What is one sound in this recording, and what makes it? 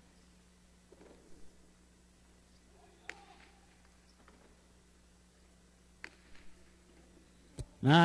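A ball thuds into a player's basket.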